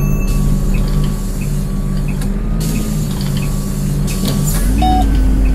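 A bus engine idles with a low rumble.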